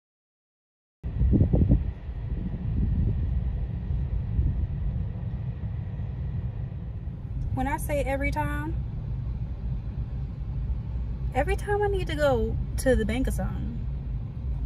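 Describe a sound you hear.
A car's engine and road noise rumble low and steady from inside the car.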